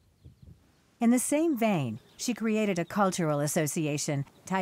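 A woman speaks calmly and close up.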